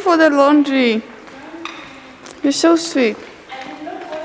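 A young girl speaks loudly and excitedly close by.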